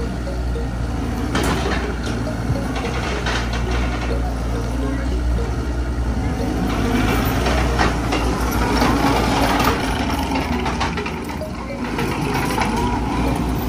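A skid steer loader's diesel engine rumbles and revs nearby.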